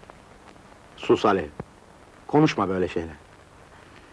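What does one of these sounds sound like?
A man speaks softly and tenderly, close by.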